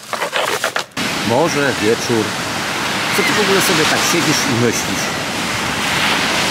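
Wind blows and surf washes on a shore.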